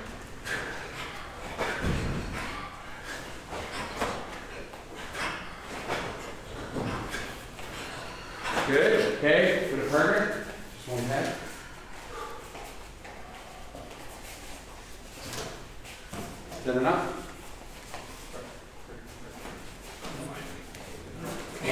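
A man calls out instructions loudly in an echoing room.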